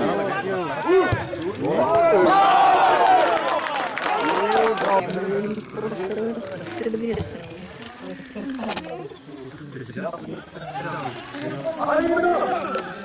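A crowd of mostly men shouts and chants outdoors.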